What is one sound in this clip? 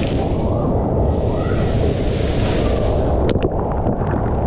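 Water rushes down a slide close by.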